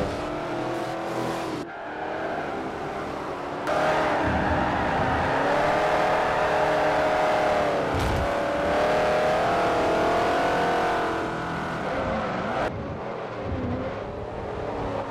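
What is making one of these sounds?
Racing car engines roar and rev.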